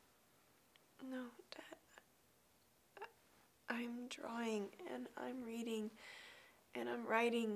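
A young woman speaks quietly close by, in short hesitant phrases.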